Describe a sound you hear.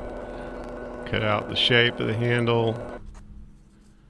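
A drill press whirs as its bit bores into wood.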